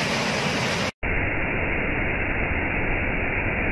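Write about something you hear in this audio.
A waterfall roars and churns over a rocky slope.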